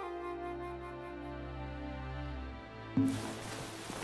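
Soft steady music plays.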